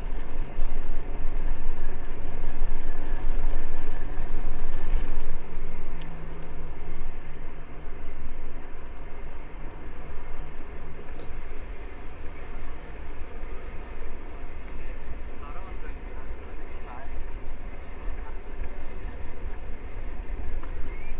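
Wind rushes and buffets against the microphone.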